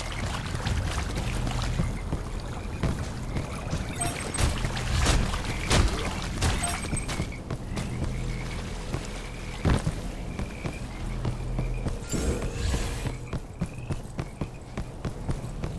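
Energy blasts crackle and zap from a game weapon.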